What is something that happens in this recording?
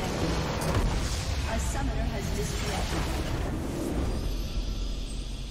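A large structure explodes with a heavy boom.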